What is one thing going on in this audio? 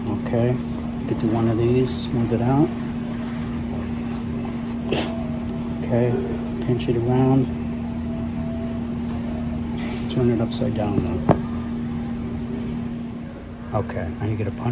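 Fingers brush and tap against a felt hat.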